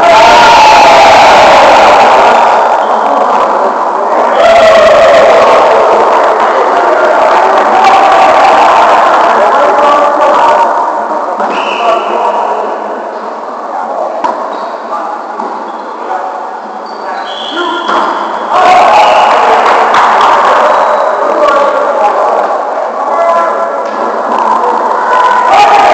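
A volleyball is struck with hands.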